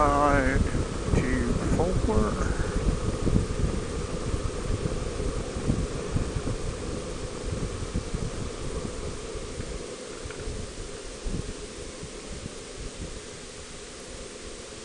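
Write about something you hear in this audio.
Tyres hum steadily on a paved road.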